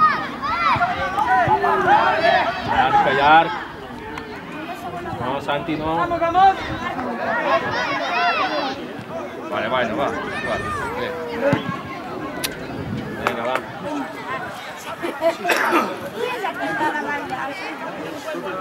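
Children shout and call out across an outdoor pitch.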